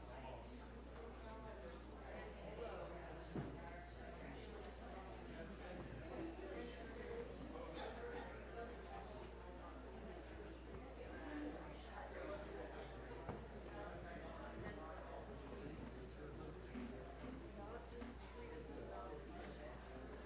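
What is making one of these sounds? Many people murmur and chat quietly in a large, echoing room.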